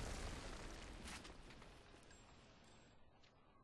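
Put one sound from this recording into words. A rifle shot rings out and echoes away.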